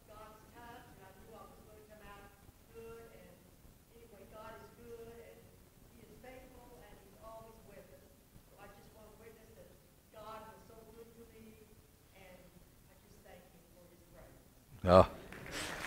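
A man lectures calmly through a microphone in a large echoing hall.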